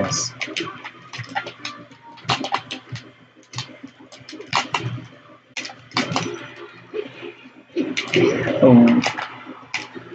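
Cartoonish fighting game blows and whooshes land in quick bursts.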